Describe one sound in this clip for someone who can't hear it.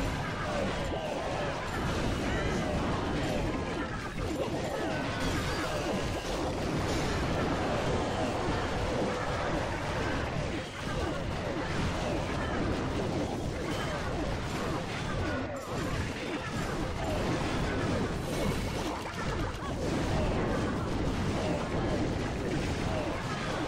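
Cartoonish explosions and clashes of battle sound in quick succession.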